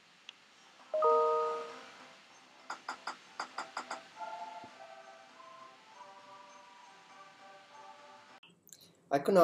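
A phone game plays a short tinkling tune through a small speaker.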